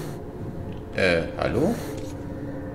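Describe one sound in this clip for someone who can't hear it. A middle-aged man speaks briefly into a close microphone.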